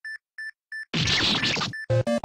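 A game character bursts with a crunchy electronic explosion.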